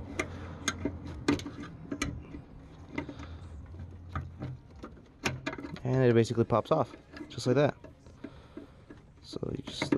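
A screwdriver clicks and scrapes against metal parts.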